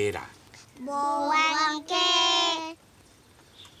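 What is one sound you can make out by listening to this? A young girl speaks up in a high, lively voice.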